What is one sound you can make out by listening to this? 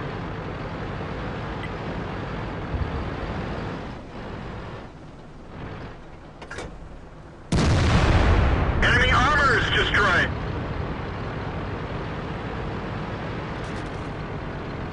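A heavy tank engine rumbles low and steadily.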